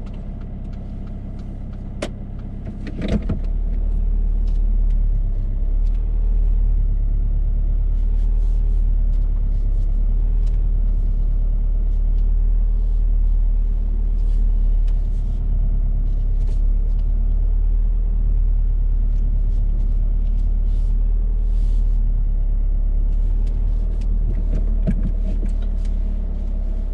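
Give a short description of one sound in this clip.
A car engine hums steadily as the car drives slowly.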